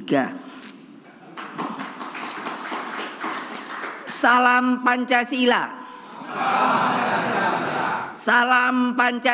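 An elderly woman shouts with animation through a microphone in a large echoing hall.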